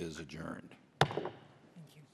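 A gavel bangs once on a wooden block.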